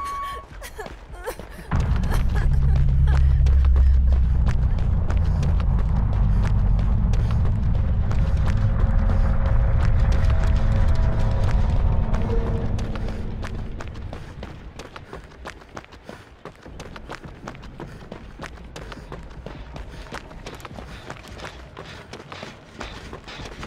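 Footsteps run quickly through grass and over dirt.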